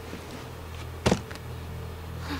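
A body thuds heavily onto a hard floor.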